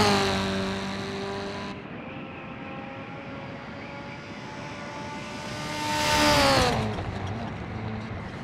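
A car engine passes by, rising and then fading.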